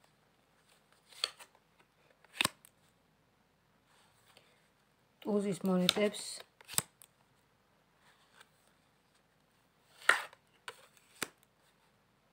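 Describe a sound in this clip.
Playing cards snap and flick as they are shuffled.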